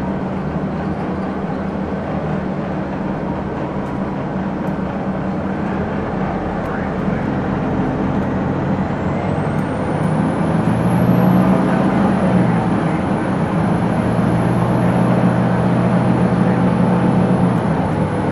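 A bus engine idles with a low, steady rumble that grows louder.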